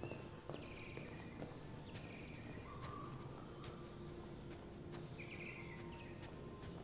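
Footsteps thud on stairs as a man climbs.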